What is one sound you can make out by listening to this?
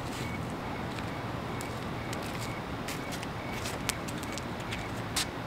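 Footsteps approach on pavement.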